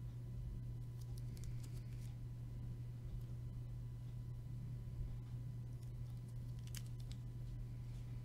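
A plastic card holder clicks as it is turned over in the hands.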